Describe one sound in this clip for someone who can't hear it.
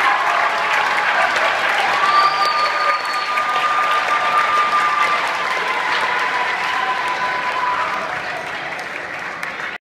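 A band plays music, heard from far back in a large hall, and slowly fades.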